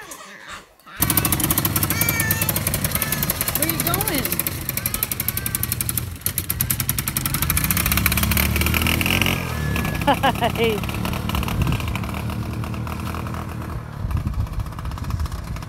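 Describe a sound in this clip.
A quad bike engine rumbles and drives away.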